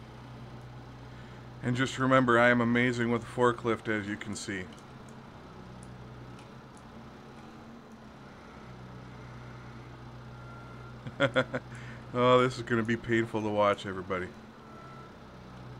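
A forklift engine idles with a steady low hum.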